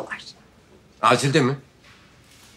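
An elderly man speaks in a low, firm voice.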